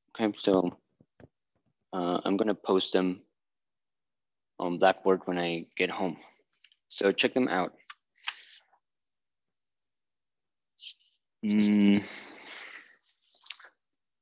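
A man talks calmly close by, in short bursts with pauses.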